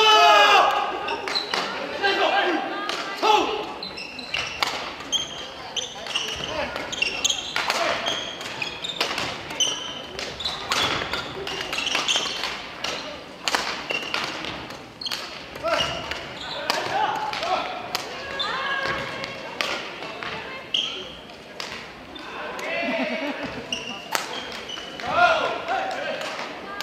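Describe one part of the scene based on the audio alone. Young people call out and shout during play.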